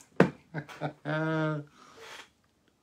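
An older man laughs.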